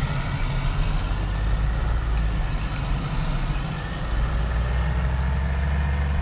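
A car engine hums low and steadily, rising as the car speeds up.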